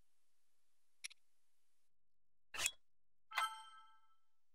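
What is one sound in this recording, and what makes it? A menu clicks softly a few times.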